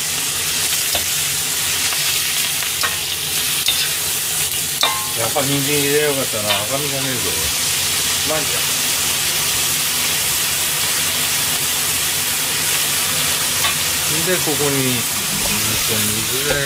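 A metal ladle scrapes and clinks against a wok.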